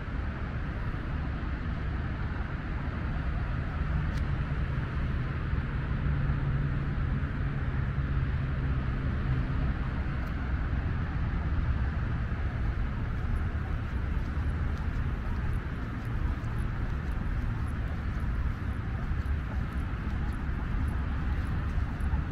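Tyres roll on smooth pavement with a low rumble.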